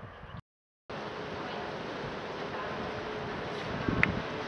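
A river flows gently.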